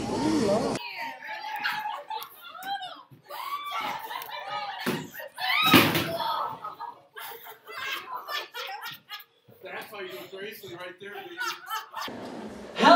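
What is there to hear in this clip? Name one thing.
Children laugh loudly close by.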